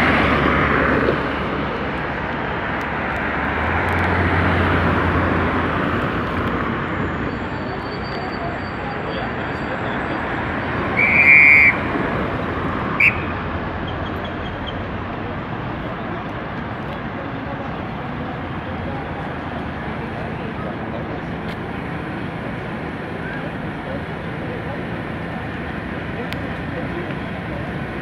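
Traffic rumbles steadily along a busy street outdoors.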